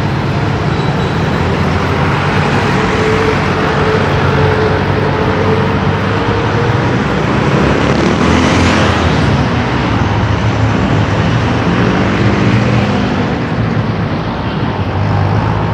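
Traffic drives past on a busy street.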